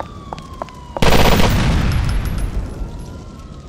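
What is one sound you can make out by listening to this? A car explodes with a loud boom that rumbles away.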